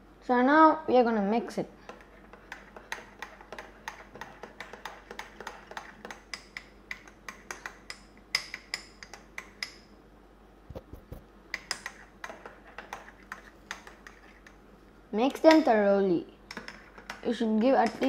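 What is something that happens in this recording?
A metal spoon clinks rapidly against the side of a ceramic mug while stirring.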